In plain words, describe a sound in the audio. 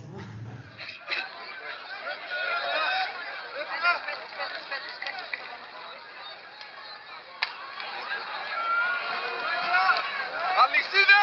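A crowd shouts and chants loudly outdoors.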